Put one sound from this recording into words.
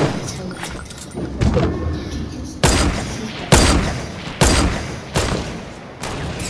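Wooden panels snap into place with loud thuds as they are built.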